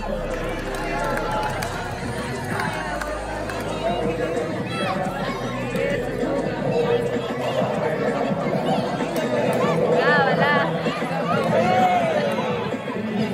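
A crowd of children and young people cheers and shouts nearby.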